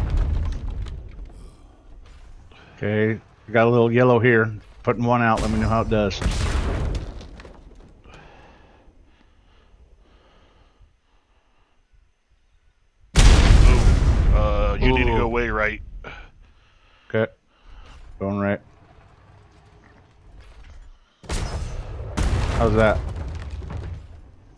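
Loud explosions boom and rumble nearby.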